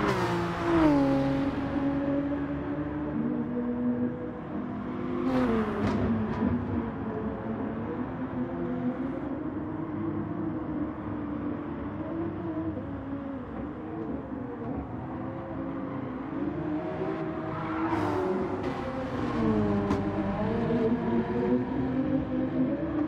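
A racing car engine roars and revs up and down as it shifts gears.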